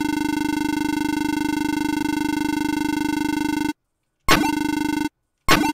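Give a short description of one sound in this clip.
Rapid electronic beeps chatter as game dialogue text scrolls.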